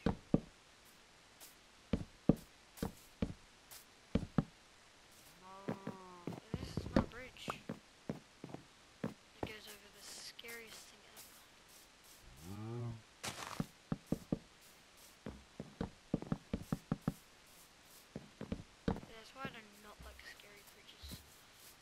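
Wooden blocks thud into place one after another.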